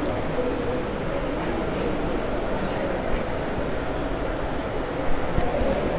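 A man speaks with animation into a handheld microphone.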